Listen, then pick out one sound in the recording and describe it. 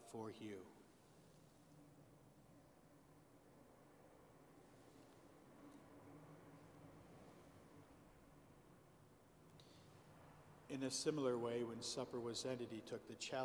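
A man speaks calmly and steadily, heard through a microphone in a large echoing hall.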